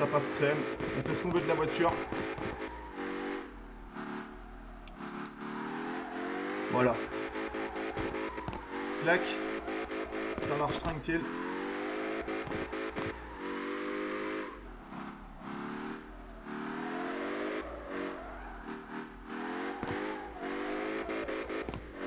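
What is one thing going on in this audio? A car engine revs hard, rising and falling in pitch.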